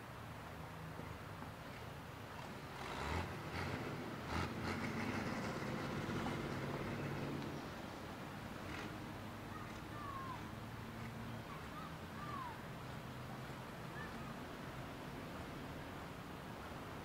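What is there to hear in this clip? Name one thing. Traffic rumbles along a nearby road outdoors.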